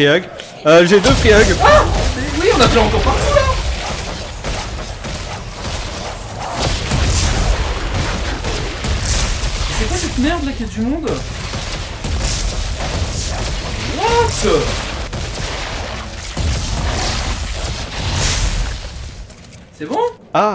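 Energy weapons crackle and zap in rapid bursts.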